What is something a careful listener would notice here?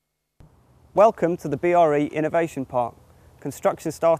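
A man speaks clearly and expressively to a nearby microphone.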